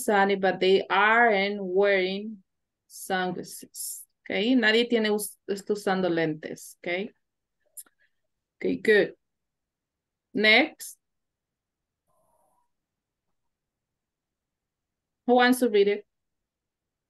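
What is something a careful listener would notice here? A woman speaks calmly over an online call, in short phrases with pauses.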